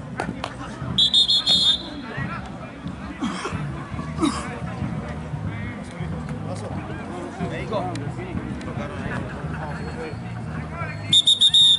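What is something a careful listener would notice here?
A referee's whistle blows in short shrill blasts.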